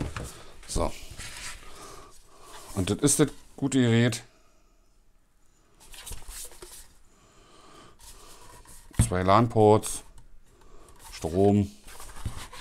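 Hands turn a plastic box over, with soft scrapes and taps close by.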